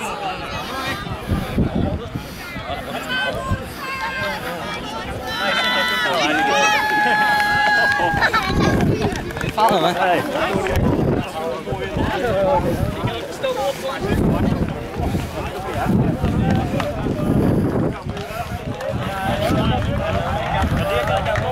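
A crowd of spectators chatters and calls out outdoors.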